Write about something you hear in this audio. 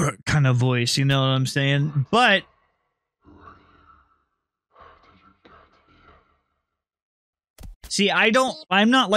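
A woman talks with animation into a microphone.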